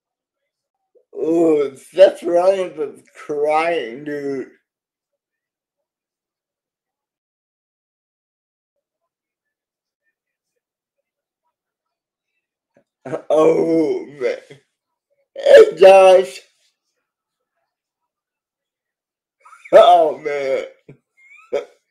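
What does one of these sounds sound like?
A middle-aged man talks with animation over an online call, in short bursts with long pauses.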